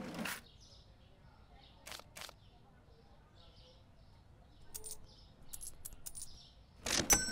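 Coins clink in a till drawer.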